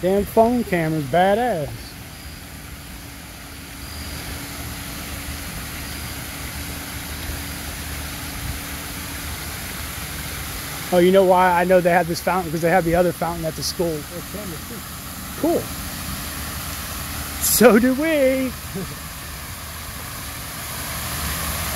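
Fountain water splashes and patters steadily outdoors.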